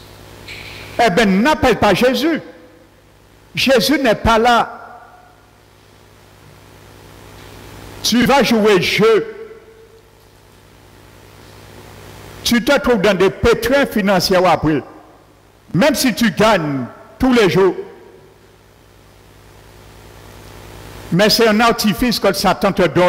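An older man speaks with animation through a microphone and loudspeakers, in bursts with pauses.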